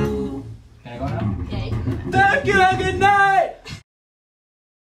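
An acoustic guitar strums.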